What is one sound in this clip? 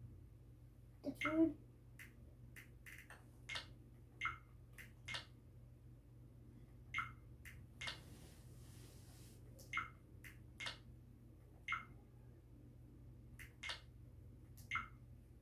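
Short electronic menu blips sound from a television speaker, one after another.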